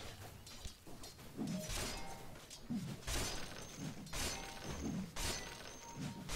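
Spells and blows crash in a fast game battle.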